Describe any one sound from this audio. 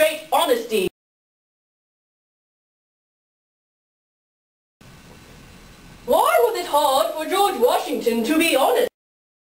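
A man speaks in a playful, cartoonish puppet voice close by.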